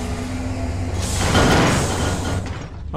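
An explosion bursts with a loud roar.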